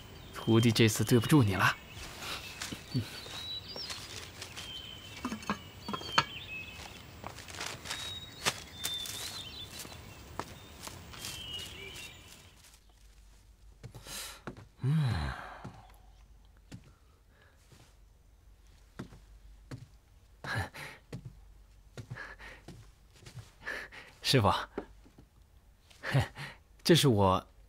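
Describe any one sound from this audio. A young man speaks earnestly, close by.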